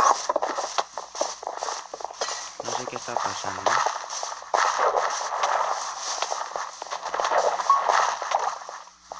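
Footsteps patter quickly on grass and wood.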